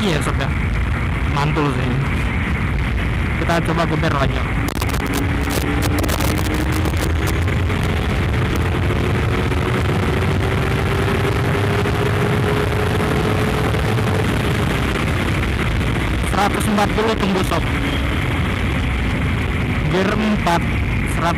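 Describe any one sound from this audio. A motorcycle engine roars steadily, rising and falling in pitch.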